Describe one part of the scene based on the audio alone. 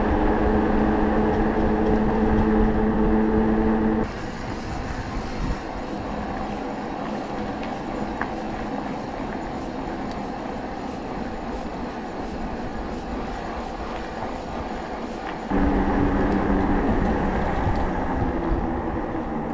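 An electric bicycle motor hums steadily.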